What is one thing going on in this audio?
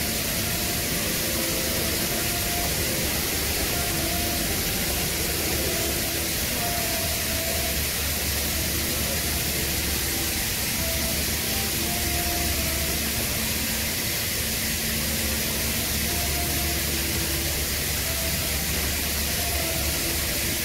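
An electric welding arc crackles and hisses steadily.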